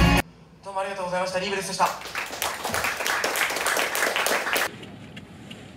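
A band plays loud live music with electric guitars.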